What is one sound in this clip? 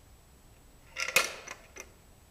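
A plastic mousetrap snaps shut with a sharp click.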